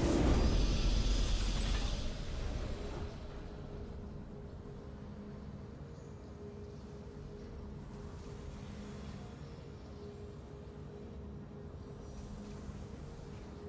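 A triumphant victory fanfare plays and fades.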